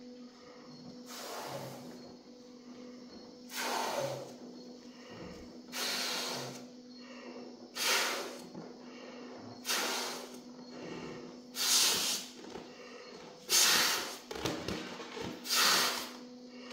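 A man blows up a balloon with long, loud puffs of breath, echoing in a large room.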